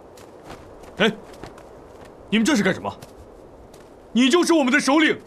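A man speaks firmly, close by, in short bursts.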